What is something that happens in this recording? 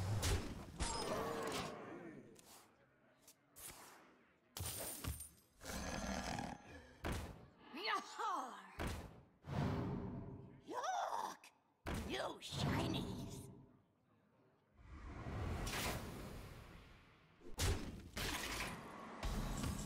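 Video game sound effects whoosh, chime and thud as cards are played.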